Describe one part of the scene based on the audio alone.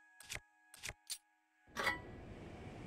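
Menu selection clicks sound a few times.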